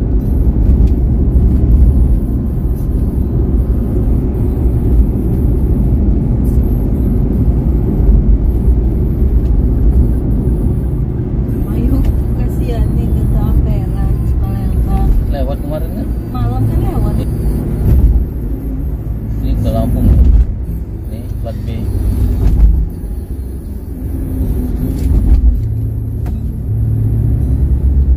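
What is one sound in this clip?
A car drives steadily along a highway, with a low road rumble.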